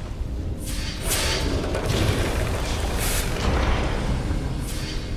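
A forge hisses and clatters as metal is worked.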